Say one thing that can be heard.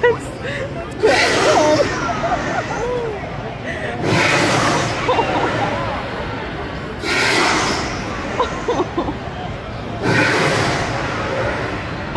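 Gas flames burst upward with loud roaring whooshes.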